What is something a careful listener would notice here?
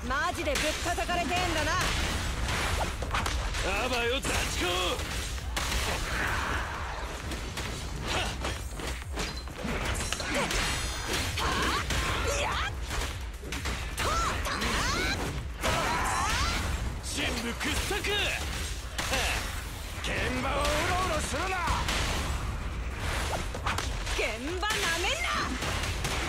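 Fast strikes, slashes and impacts clash throughout a fight.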